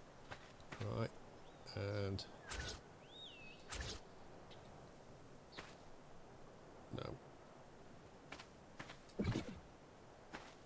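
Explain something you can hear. A man talks into a microphone in short bursts.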